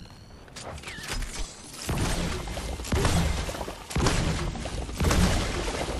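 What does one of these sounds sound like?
An electric zap crackles loudly.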